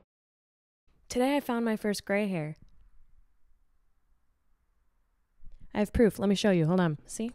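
A young woman sings close into a microphone.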